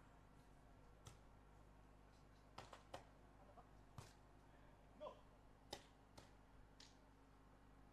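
A volleyball is struck with sharp slaps of hands and arms.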